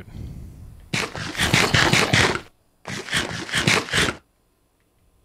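Food is chewed with quick, crunchy munching sounds.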